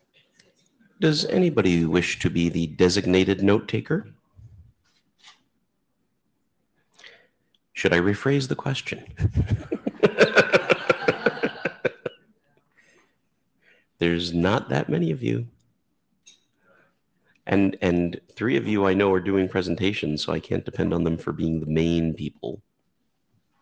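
A man speaks calmly through a microphone over an online call, with pauses.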